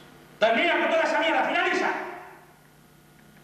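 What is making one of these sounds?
A man calls out loudly and dramatically in an echoing hall.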